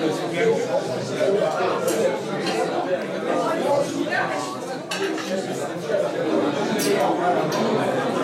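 Many people chatter around a table.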